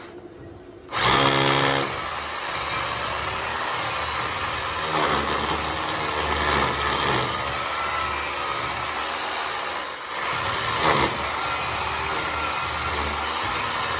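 A power drill whirs loudly as it bores into a concrete wall.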